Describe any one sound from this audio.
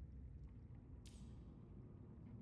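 A locker door slides open with a quick whoosh.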